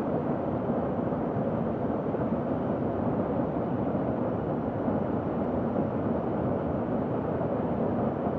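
A jet engine roars in a steady low rumble.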